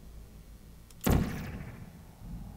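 A sci-fi energy gun fires with a sharp electric zap.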